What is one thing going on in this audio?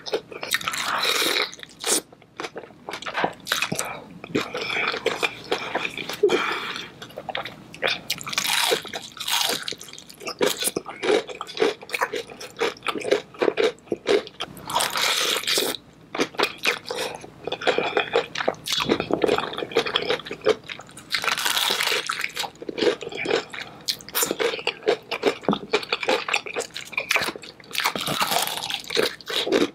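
Crispy fried chicken crunches loudly with each bite, close up.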